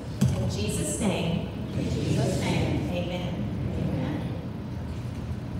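A woman speaks calmly in a large echoing room.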